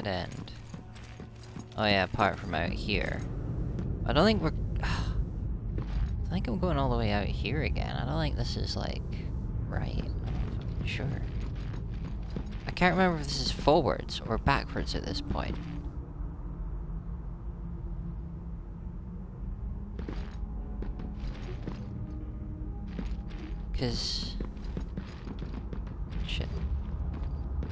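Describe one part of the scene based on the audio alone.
Heavy footsteps clank on a metal floor.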